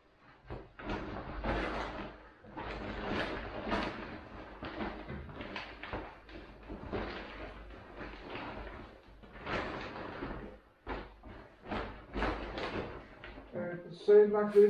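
A plastic bag rustles and crinkles up close.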